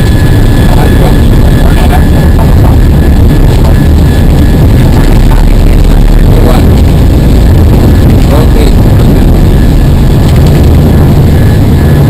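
The aircraft rumbles and rattles as it rolls fast along a runway.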